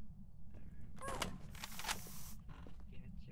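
A gun fires with a sharp blast.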